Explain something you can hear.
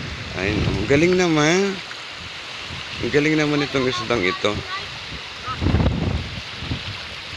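Small waves lap gently against a pebbly shore.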